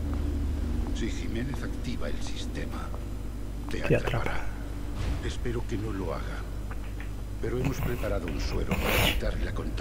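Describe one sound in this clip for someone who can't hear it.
A young man talks calmly into a microphone.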